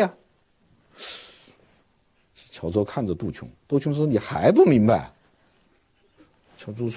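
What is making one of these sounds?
A middle-aged man speaks expressively into a microphone, pausing between phrases.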